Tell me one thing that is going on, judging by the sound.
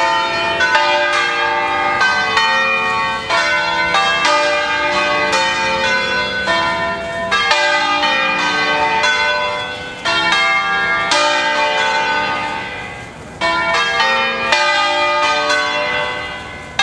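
Large church bells swing and ring loudly in a rapid, overlapping peal, each stroke ringing on.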